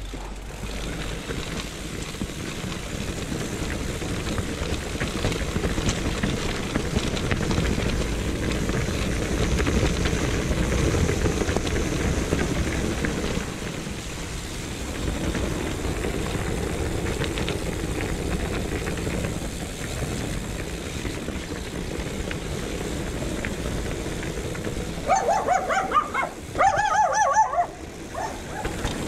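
Bicycle tyres rumble and crunch over a rough stony track.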